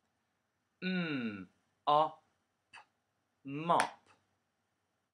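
A young man speaks close to a microphone, sounding out word parts slowly and with animation.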